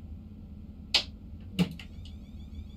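A control lever clicks sharply twice.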